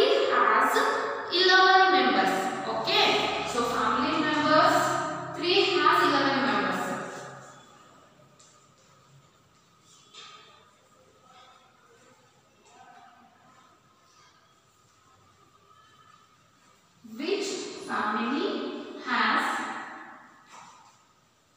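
A woman speaks clearly and calmly, as if teaching, close by.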